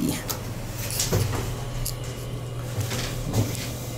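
Elevator doors slide shut.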